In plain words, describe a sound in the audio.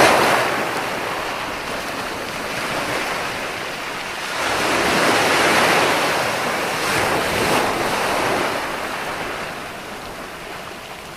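Ocean waves break and wash onto the shore, swelling and fading.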